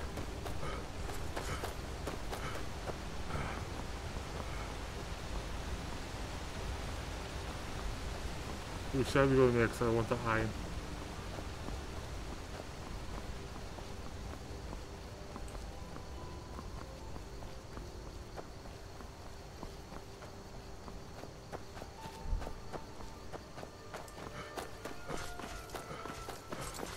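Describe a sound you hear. Footsteps crunch on a stony dirt path.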